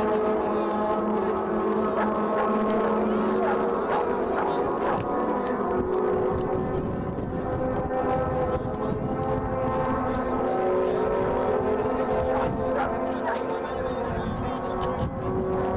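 Young women shout and call to each other in the distance outdoors.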